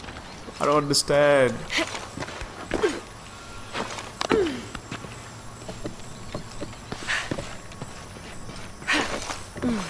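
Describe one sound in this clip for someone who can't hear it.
Wooden poles creak and knock as someone climbs a scaffold.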